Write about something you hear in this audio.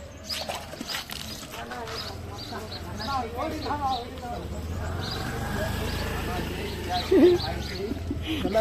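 Several young men talk excitedly outdoors.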